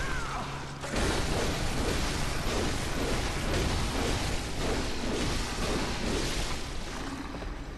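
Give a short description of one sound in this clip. Blades slash and flesh splatters in a fight.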